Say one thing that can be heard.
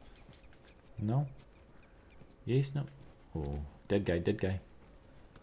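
A young man talks in short bursts into a microphone, close by.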